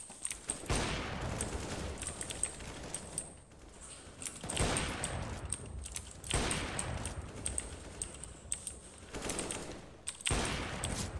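A sniper rifle fires loud, sharp shots that echo.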